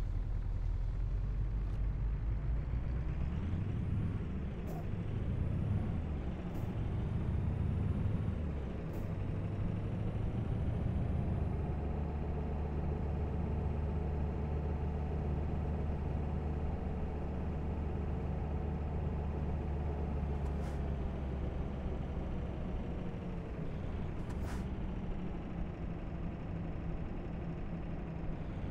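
A truck engine drones steadily, rising and dropping in pitch as gears change.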